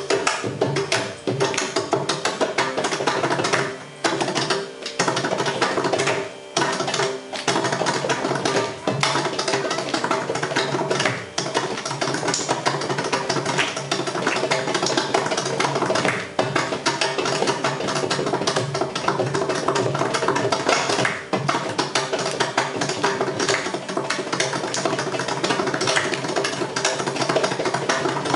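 A young man claps his hands to keep time.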